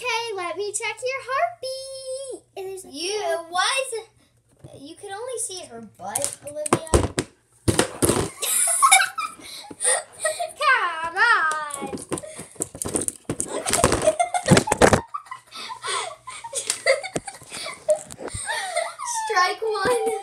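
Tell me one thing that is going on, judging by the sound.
Young girls talk and sing playfully close by.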